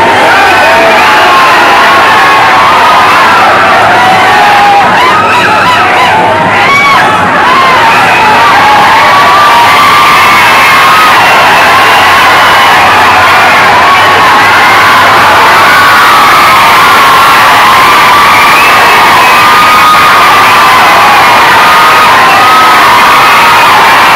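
A crowd of young men shouts and cheers loudly close by.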